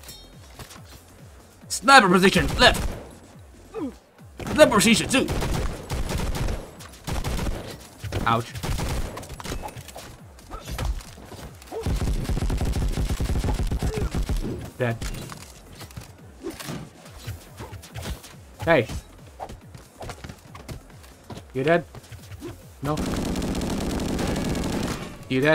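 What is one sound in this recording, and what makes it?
Guns fire in rapid bursts with blasts and impacts.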